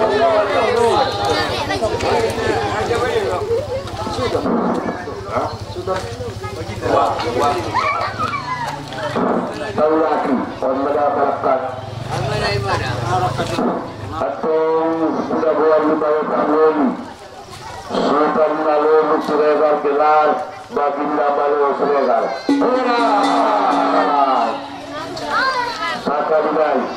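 A man recites in a chanting voice through a microphone and loudspeakers, outdoors.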